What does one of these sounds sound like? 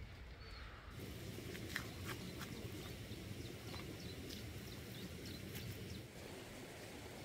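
Dry soil crunches and scrapes as a hand digs into it.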